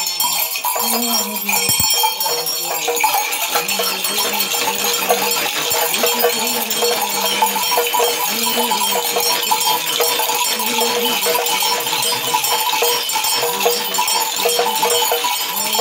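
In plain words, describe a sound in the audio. Seed rattles shake rapidly in a rhythmic pattern.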